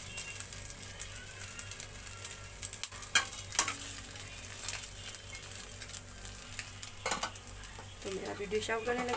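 Bread sizzles and crackles in a hot pan.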